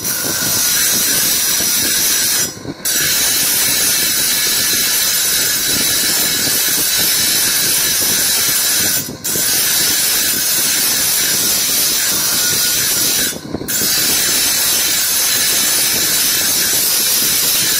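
An electric polishing wheel spins with a steady whirring hum.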